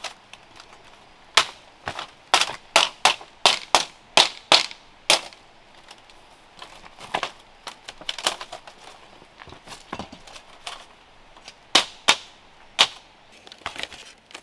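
Bamboo strips clack and knock together sharply as they are woven into a mat.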